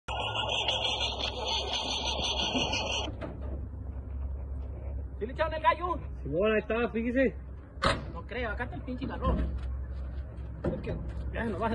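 A truck door clunks open.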